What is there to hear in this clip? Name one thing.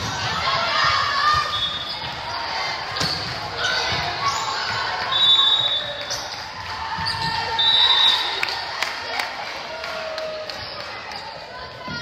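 Spectators and players shout and cheer loudly in a large echoing gym.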